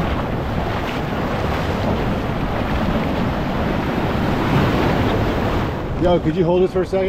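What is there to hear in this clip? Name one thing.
Waves rush and foam in the surf.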